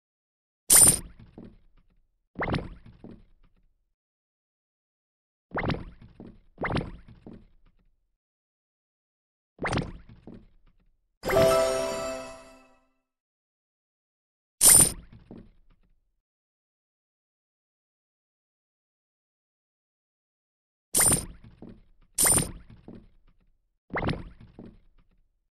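Short interface chimes sound as menu buttons are tapped.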